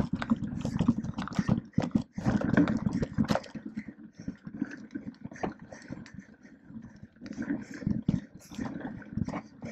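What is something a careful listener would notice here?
A bicycle's chain and frame rattle over bumps.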